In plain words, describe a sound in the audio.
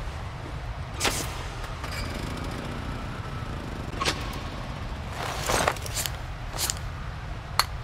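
Metal switches click sharply several times.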